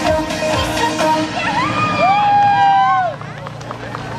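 Young women shout a drawn-out cheer together outdoors.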